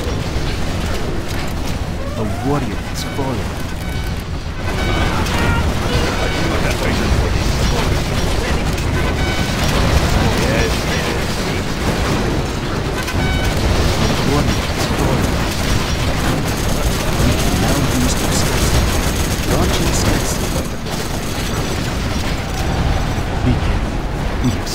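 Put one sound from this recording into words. Explosions boom and rumble in a game battle.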